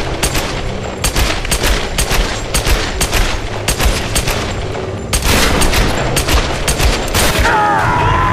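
Pistols fire in rapid bursts of sharp shots.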